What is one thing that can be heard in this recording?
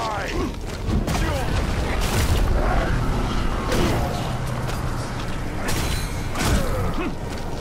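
Blows land with heavy thuds and crunches.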